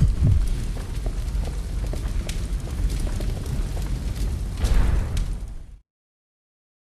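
A fire crackles and roars nearby.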